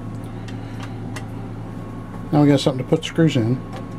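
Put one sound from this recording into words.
A screwdriver clicks against metal parts.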